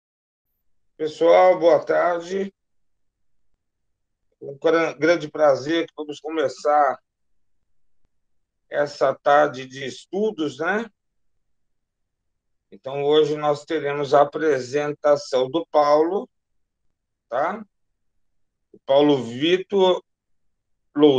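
A middle-aged man talks calmly over an online call.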